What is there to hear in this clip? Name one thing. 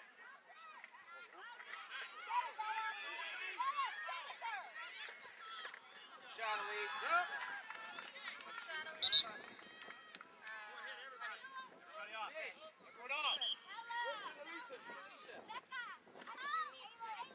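A crowd of adult spectators shouts and cheers outdoors.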